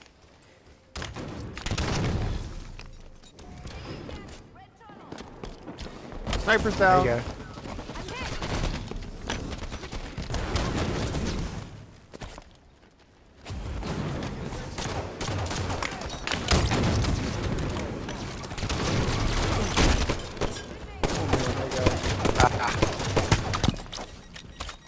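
Gunfire from a video game rattles and bursts.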